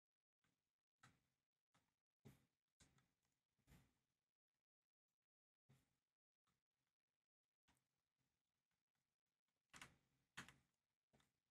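Footsteps tap faintly on a hard floor.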